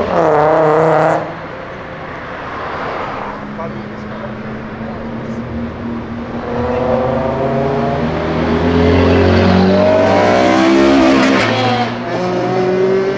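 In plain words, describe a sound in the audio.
A car engine revs loudly and roars as it passes close by.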